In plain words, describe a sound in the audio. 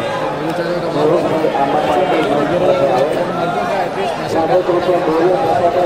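A large outdoor crowd chatters and shouts loudly.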